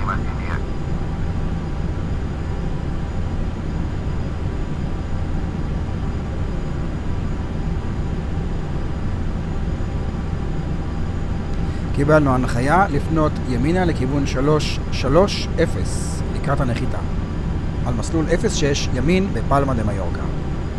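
Jet engines hum with a steady low drone.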